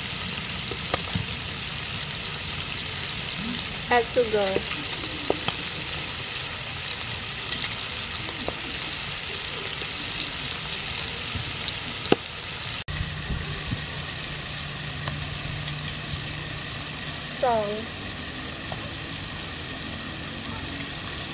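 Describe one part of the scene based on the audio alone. Shellfish sizzle steadily in hot oil in a pan.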